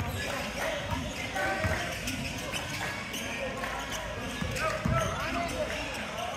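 Young players call out to each other in an echoing gym.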